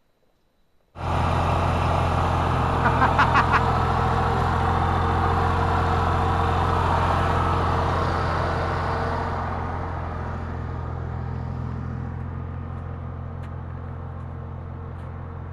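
A truck engine idles close by with a steady low rumble.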